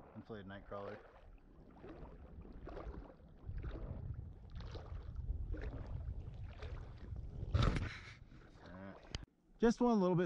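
Wind rumbles across open water.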